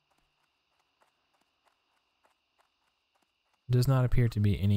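Footsteps pad softly on grass.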